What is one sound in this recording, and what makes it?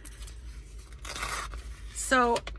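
Paper slides and rustles on a cutting board.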